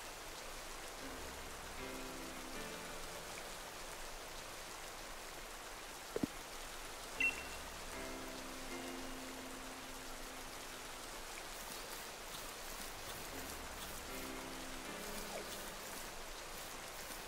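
A soft electronic tune plays in short repeating phrases.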